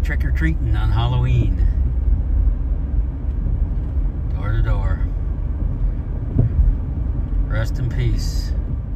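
A car drives along a road with a low, steady rumble.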